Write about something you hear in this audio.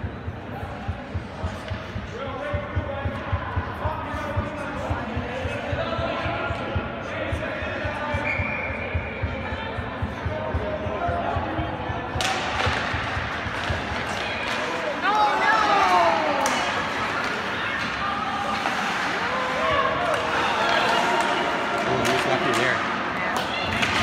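Hockey sticks click and clack against a puck.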